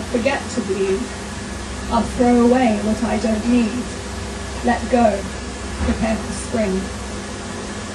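A young woman reads aloud into a microphone.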